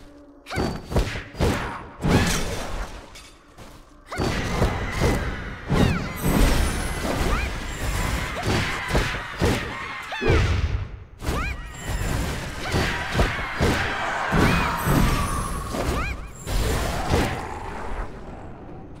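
Weapons clash and strike in a fast fight, with sharp hits and swooshes.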